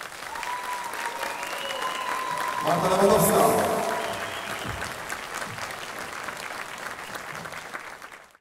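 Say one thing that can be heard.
A large audience claps and cheers in a big echoing hall.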